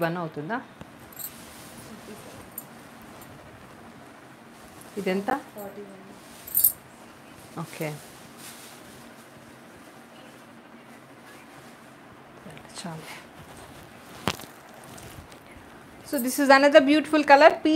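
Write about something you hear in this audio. Fabric rustles as a woman handles and drapes a sari.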